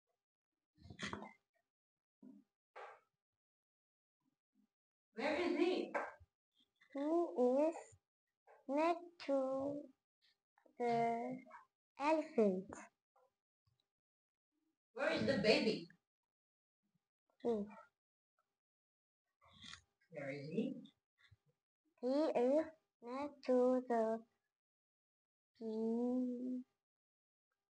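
A young girl speaks close by in short, lively bursts with pauses between.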